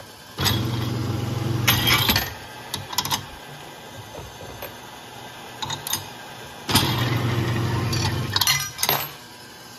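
A garage door opener motor hums as it turns a metal carousel.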